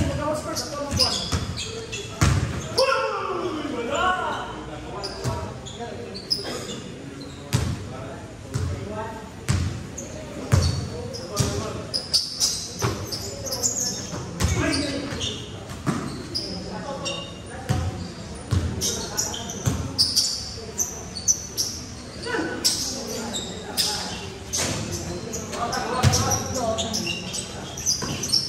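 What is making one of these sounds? Young men call out and shout to each other during play.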